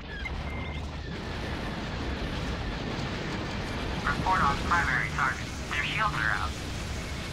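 Laser cannons fire in quick bursts.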